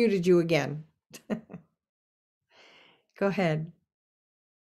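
An elderly woman laughs over an online call.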